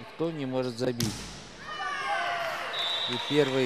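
A crowd cheers and whistles in a large echoing hall.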